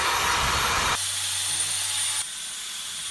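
A hot air blower hums steadily.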